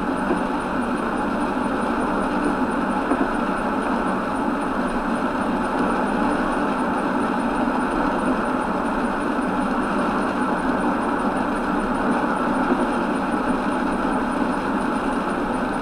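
A windscreen wiper sweeps across the glass now and then.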